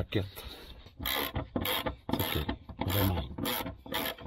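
A ratchet wrench clicks in quick bursts.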